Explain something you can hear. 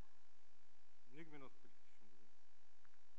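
A middle-aged man speaks briefly into a microphone.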